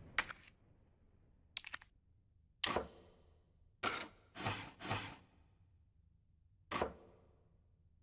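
Wooden blocks clack as they are turned in a puzzle box.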